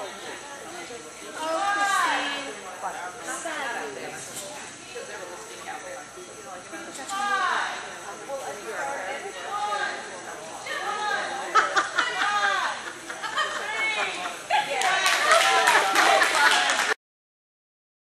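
A woman calls out eagerly to a dog in a large echoing hall.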